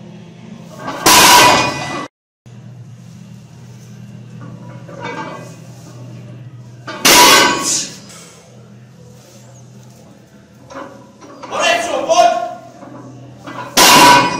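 Heavy weight plates clank down onto the floor.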